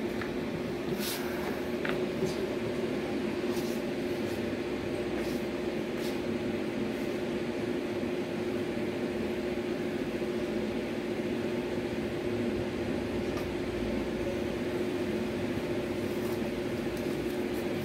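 Cables rustle and click softly as they are handled.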